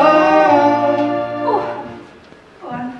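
A man sings a long held note in an echoing hall.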